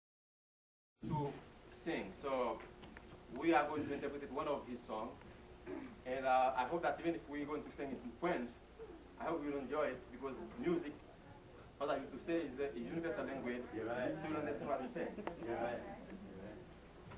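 A man speaks with animation close by in an echoing room.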